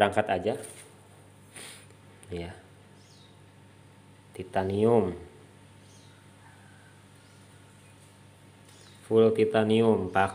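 A metal tube clinks softly as it is handled.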